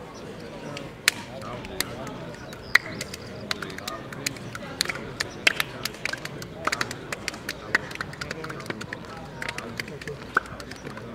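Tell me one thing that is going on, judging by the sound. Players slap hands as they greet each other.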